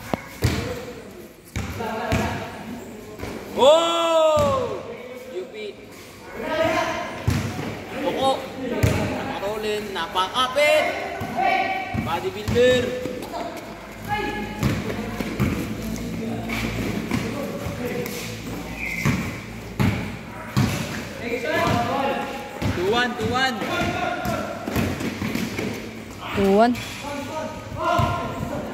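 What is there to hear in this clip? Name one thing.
Young men shout and call out to each other in an echoing hall.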